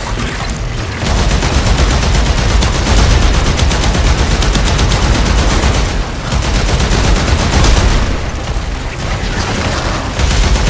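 A rapid-firing gun shoots in quick bursts.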